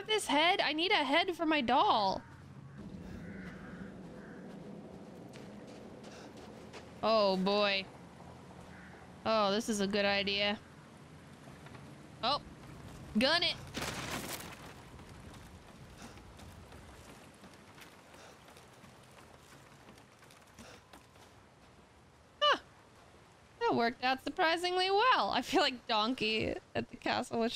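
A young woman talks in a lively, sing-song way close to a microphone.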